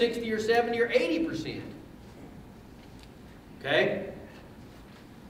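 A man speaks calmly to an audience through a microphone in a large echoing hall.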